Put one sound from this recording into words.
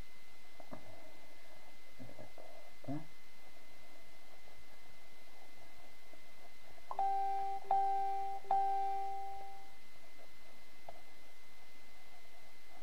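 Fingers softly rub and squeeze a knitted toy.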